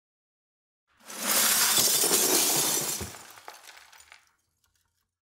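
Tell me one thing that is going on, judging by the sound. Pieces of glass clatter and crash as they pour into a box.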